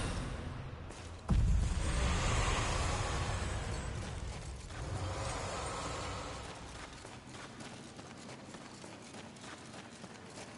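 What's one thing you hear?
Footsteps crunch on dirt and stone.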